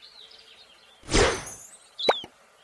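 A soft whoosh sounds as a game menu opens.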